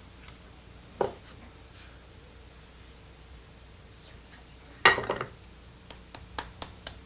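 A wooden tool taps against clay.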